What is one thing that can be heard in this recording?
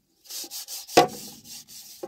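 A metal pot clanks against the ground.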